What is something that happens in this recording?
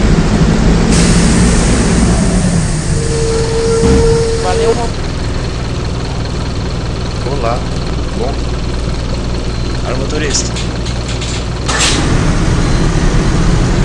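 A bus engine rumbles steadily at idle.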